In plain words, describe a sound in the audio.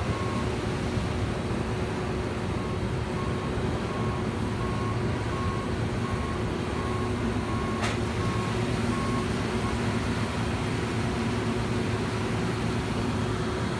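A combine harvester's engine rumbles loudly and steadily close by.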